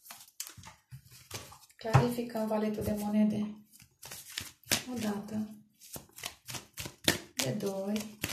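Playing cards rustle and slap as they are shuffled by hand.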